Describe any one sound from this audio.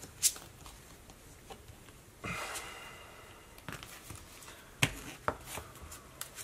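Playing cards shuffle and riffle in hands.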